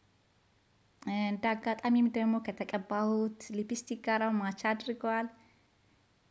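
A woman speaks close by in a cheerful tone.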